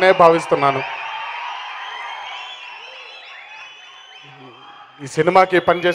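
A large crowd cheers and whistles in a big hall.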